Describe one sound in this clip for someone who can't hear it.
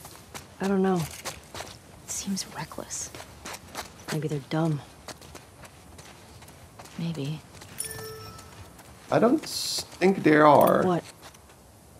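Footsteps scuff on stone paving.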